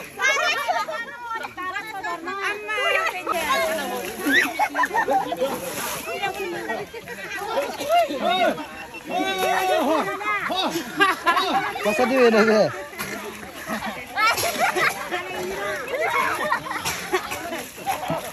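Wet mud squelches and splashes as people wrestle in it.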